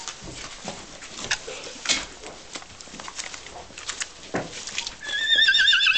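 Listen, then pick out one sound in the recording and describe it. A weanling horse's hooves tread through snowy mud.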